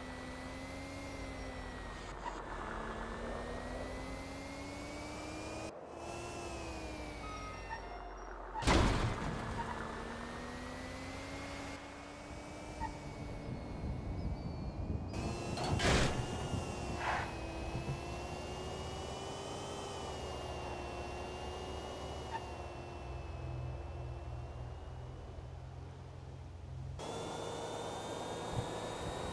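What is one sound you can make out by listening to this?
A car engine hums steadily, rising and falling in pitch as it drives.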